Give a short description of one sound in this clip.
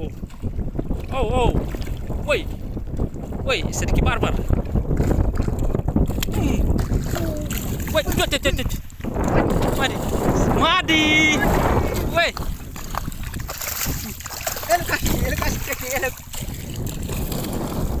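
Water splashes and sloshes close by in shallow water.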